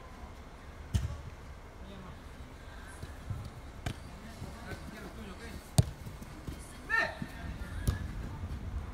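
A football is kicked with sharp thuds in a large echoing hall.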